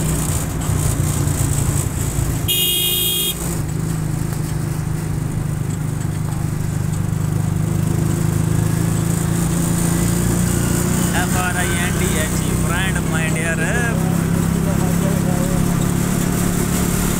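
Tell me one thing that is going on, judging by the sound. An engine hums steadily as a vehicle moves along a rough road.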